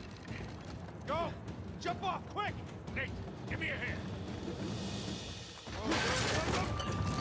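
A second man calls out urgently.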